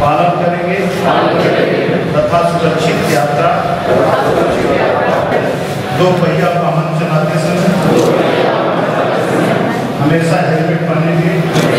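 A crowd of people repeats the words in unison, echoing in a hall.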